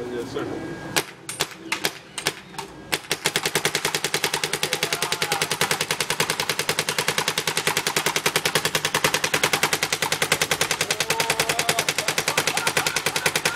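A paintball gun fires rapid sharp pops.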